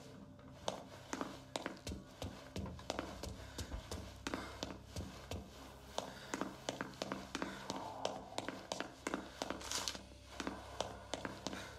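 Footsteps tap quickly on hard stairs and tiled floors.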